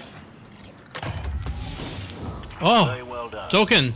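A loot chest bursts open with a shimmering whoosh.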